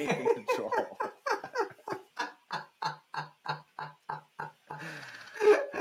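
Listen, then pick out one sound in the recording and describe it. A younger man laughs softly over an online call.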